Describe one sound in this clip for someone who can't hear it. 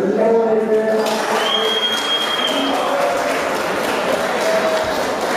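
A crowd cheers and applauds in a large echoing hall.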